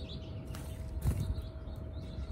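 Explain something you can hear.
A bird's wings flutter briefly as it flies up.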